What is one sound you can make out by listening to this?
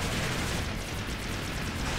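Water splashes under a robot's feet.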